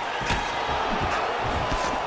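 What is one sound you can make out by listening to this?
Punches thud against a fighter's body.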